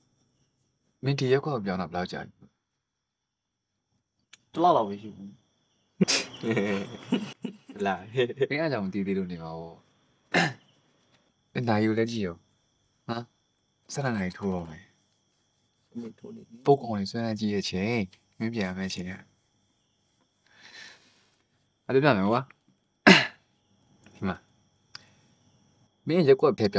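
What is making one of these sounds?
A young man speaks calmly and quietly up close.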